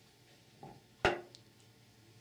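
A metal clutch drum thuds down on a wooden bench.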